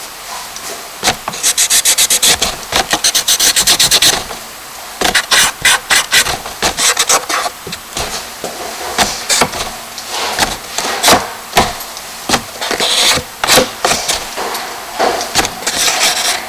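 Fingers rub and scratch across paper in quick strokes.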